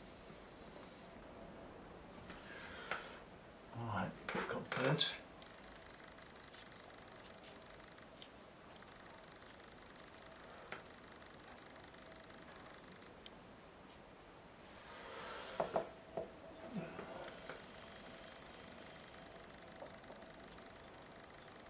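A brush dabs and brushes softly on paper.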